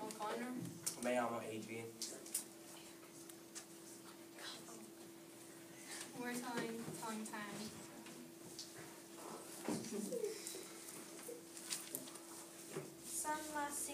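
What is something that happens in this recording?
A young girl reads aloud from a sheet.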